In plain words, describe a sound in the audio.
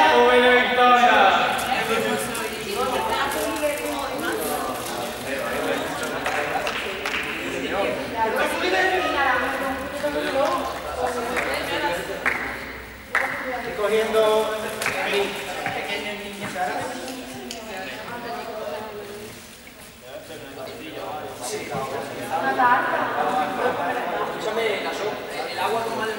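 Teenagers chatter and call out in a large echoing hall.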